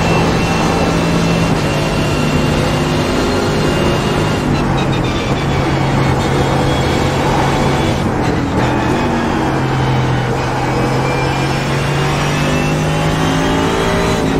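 A racing car engine roars loudly, shifting through gears as it brakes and accelerates.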